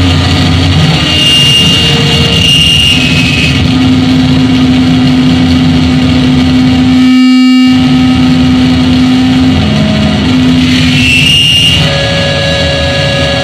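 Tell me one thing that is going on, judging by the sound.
Piercing electronic tones whine and glide high above a drone.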